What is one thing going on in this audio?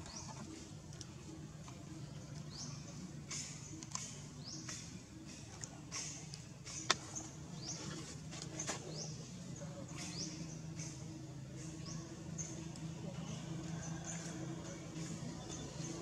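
A baby macaque gives short, high, rising squeaks.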